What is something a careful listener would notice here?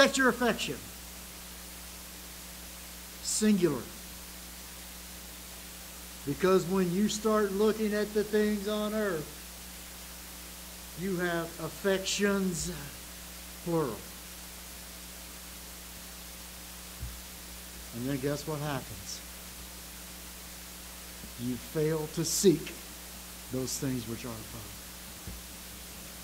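An elderly man speaks with animation into a microphone, with pauses between phrases.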